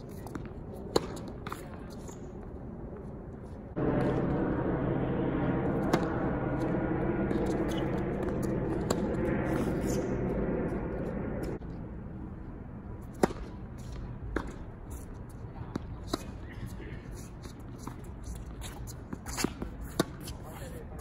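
A tennis ball is struck with a racket with sharp pops.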